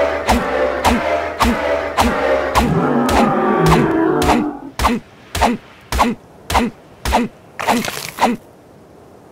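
Repeated hits strike a creature's body with dull thuds.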